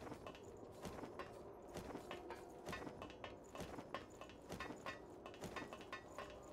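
Footsteps clank rapidly on a metal ladder.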